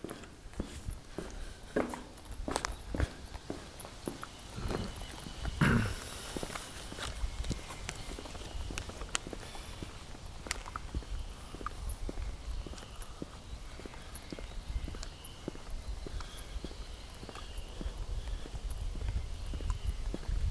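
Wind blows outdoors, rumbling softly.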